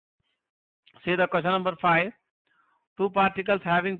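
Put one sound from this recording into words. A man speaks calmly and steadily, close to a microphone.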